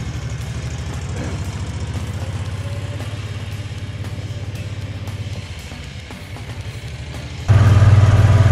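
A small utility vehicle's engine hums as it drives past.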